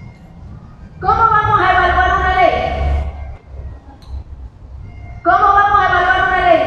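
A woman sings loudly through a microphone and loudspeakers.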